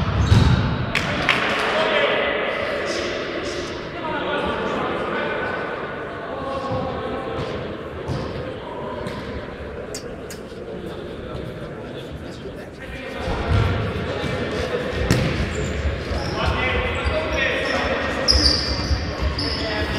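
A futsal ball is kicked and thuds in an echoing sports hall.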